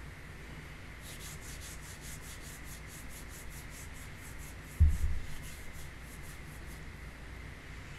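A small object rattles quickly in someone's hands close to a microphone.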